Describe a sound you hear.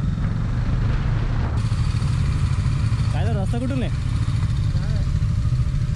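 Other motorcycles pass close by.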